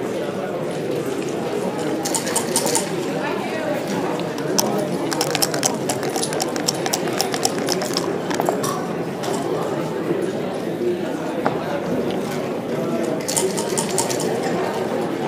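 Plastic game pieces click and slide on a wooden board.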